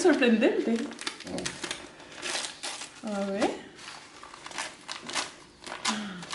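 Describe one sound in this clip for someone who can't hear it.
Paper crinkles and rustles as a package is unwrapped.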